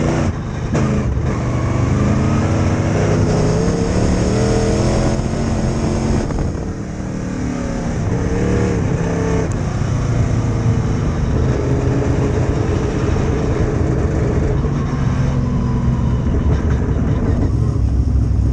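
A dirt late model race car's V8 engine roars at full throttle, heard from inside the car.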